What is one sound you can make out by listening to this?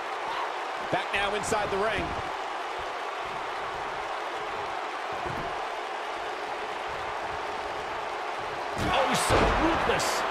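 Bodies slam hard onto a wrestling mat.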